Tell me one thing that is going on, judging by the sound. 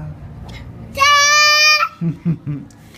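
A toddler girl squeals loudly and happily close by.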